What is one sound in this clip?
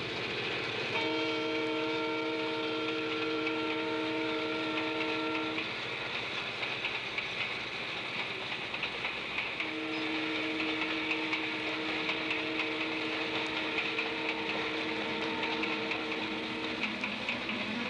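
A train horn blows in long, steady blasts.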